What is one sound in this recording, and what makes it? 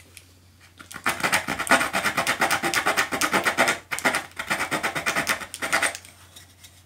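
A tool rasps against a piece of wood in quick strokes.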